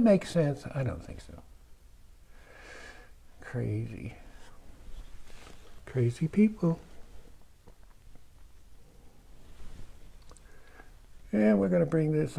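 A brush strokes softly against canvas.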